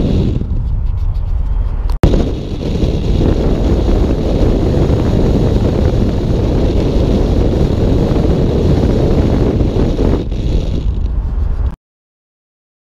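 Tyres hum steadily on a road.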